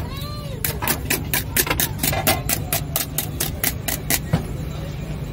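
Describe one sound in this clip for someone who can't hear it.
A whisk clatters quickly against a metal bowl.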